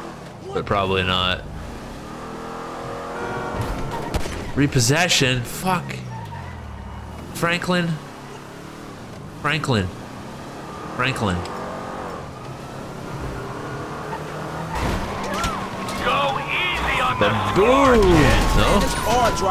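A car engine roars and revs as it speeds along.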